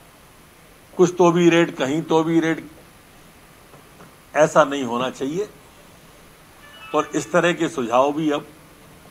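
A man speaks calmly into microphones, in short bursts with pauses.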